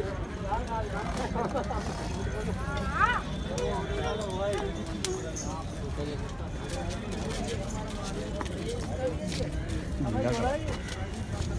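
A crowd of men talk and call out outdoors.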